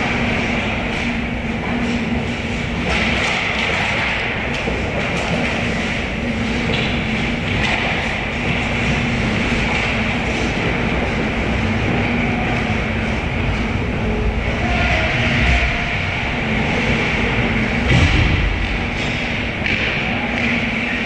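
Skates scrape and hiss across ice in a large echoing rink.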